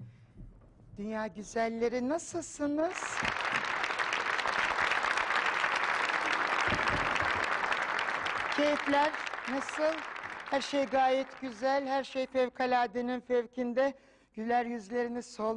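A woman speaks into a microphone with animation.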